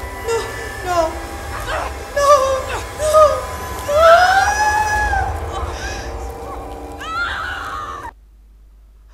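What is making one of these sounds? A young woman whimpers and wails in fright close to a microphone.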